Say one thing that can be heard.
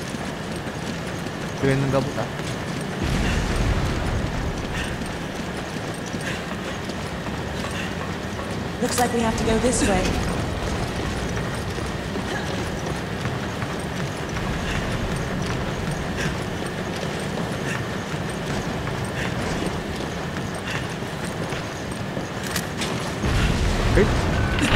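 Heavy footsteps clank on metal walkways at a steady pace.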